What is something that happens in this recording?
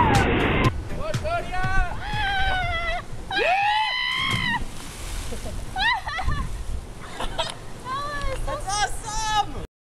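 Young boys whoop and shout excitedly outdoors.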